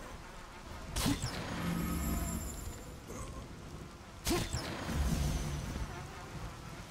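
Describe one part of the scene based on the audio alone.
Magical energy bursts with loud crackling blasts.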